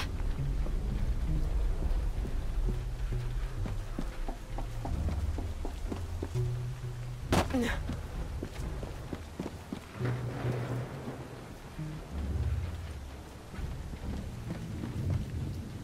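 Footsteps patter quickly across a roof.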